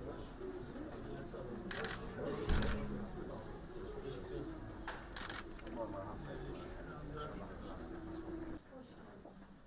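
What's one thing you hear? A crowd of people murmurs and talks nearby.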